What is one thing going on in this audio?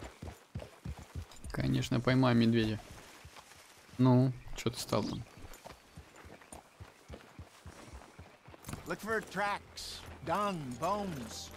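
Horse hooves clop slowly on rocky ground.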